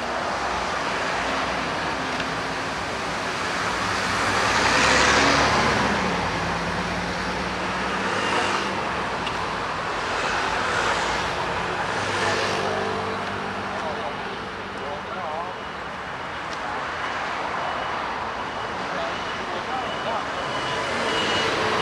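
A bus engine hums as it passes close by.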